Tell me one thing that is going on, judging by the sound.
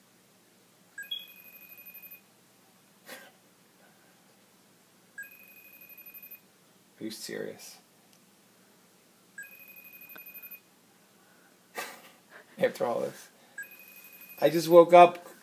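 A video call rings in repeated electronic bursts.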